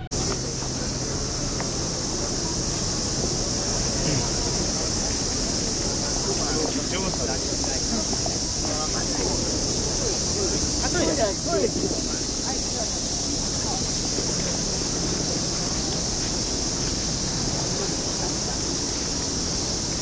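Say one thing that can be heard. Cicadas buzz loudly and steadily in the trees.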